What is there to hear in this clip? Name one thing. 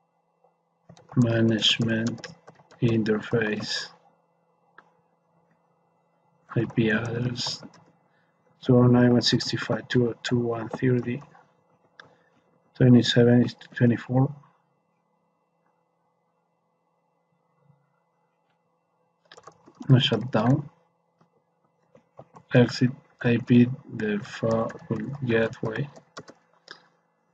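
A man speaks calmly and steadily into a close microphone, with short pauses.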